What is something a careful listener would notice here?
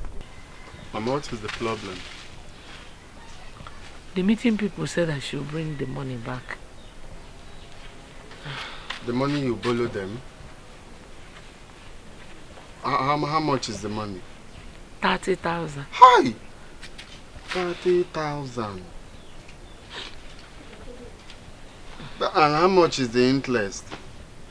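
A man speaks tensely and firmly, close by.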